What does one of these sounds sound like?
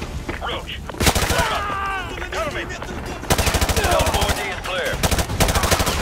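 Rapid bursts of automatic rifle fire ring out loudly.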